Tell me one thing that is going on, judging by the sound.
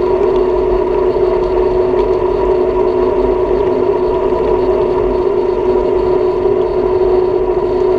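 Wind buffets loudly past.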